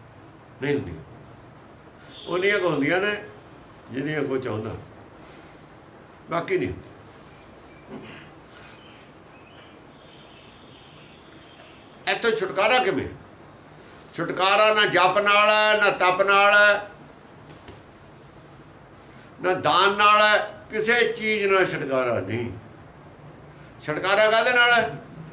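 An elderly man speaks calmly and deliberately, close by, in short phrases with pauses.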